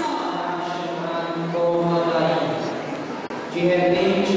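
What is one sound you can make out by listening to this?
A man sings into a microphone, heard through a loudspeaker.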